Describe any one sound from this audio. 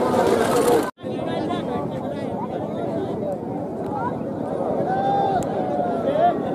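A crowd cheers and shouts from a distance outdoors.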